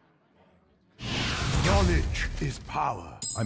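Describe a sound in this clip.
A magical sound effect bursts with a loud whoosh.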